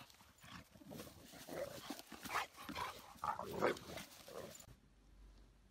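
Dogs growl and snarl as they tussle.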